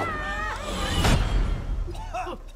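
A heavy crash lands hard and throws up dust.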